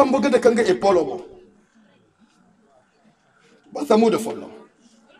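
A man speaks through a microphone in short phrases.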